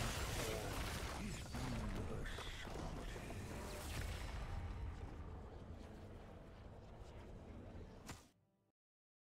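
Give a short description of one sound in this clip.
Fantasy battle sound effects clash and crackle, slowly fading.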